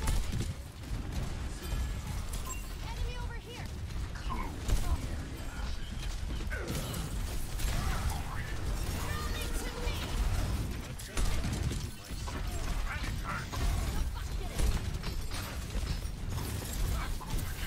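Video game weapons fire in rapid bursts.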